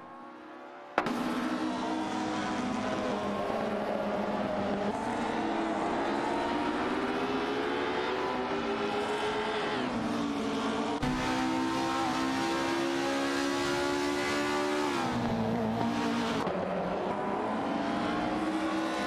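Racing car engines whine and roar, shifting pitch as they rev up and down.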